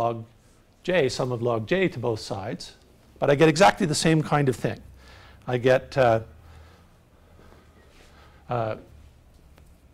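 A middle-aged man lectures calmly, in bursts with pauses.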